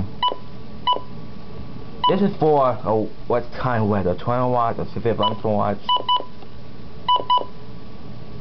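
An electronic device beeps in short, high double tones.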